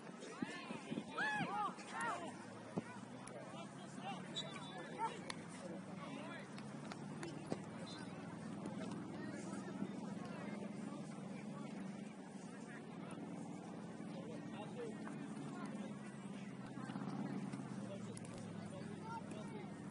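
Men and women call out and chatter far off across an open outdoor field.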